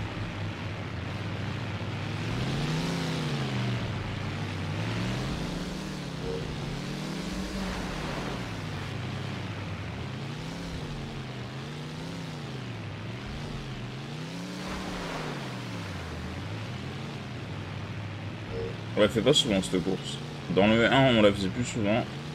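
A car engine revs up and down over and over throughout.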